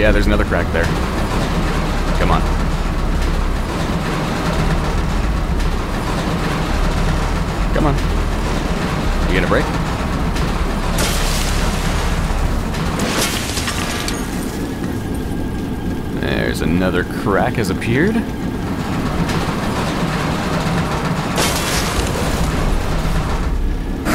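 A heavy metal valve wheel creaks and grinds as it turns.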